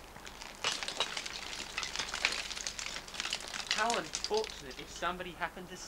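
Loose stones crunch and clatter underfoot.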